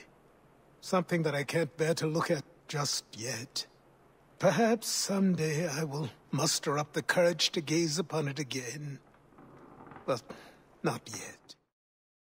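A middle-aged man speaks slowly and gravely, close by.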